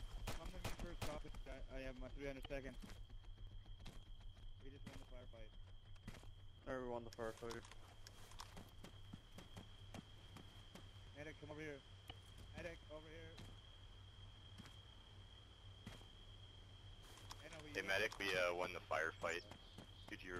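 Footsteps thud on rough ground.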